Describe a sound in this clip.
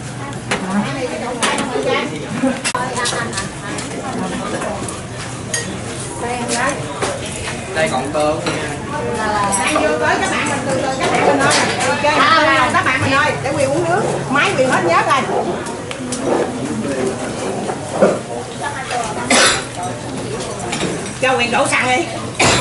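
Spoons and chopsticks clink against bowls.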